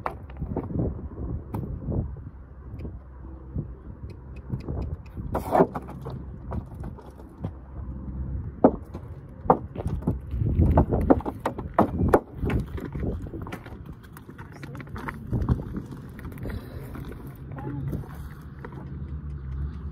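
Hooves crunch and thud on loose gravel.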